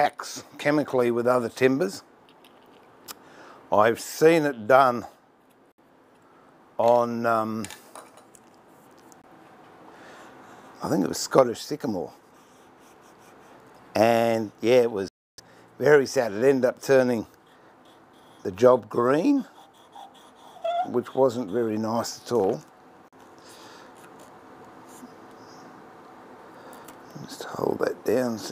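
A man talks calmly nearby, in short phrases with pauses.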